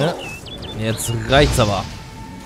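A sword clangs against a blade.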